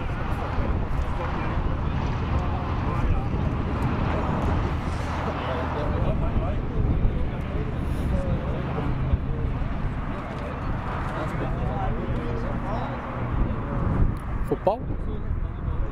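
Wind rumbles across an open outdoor field.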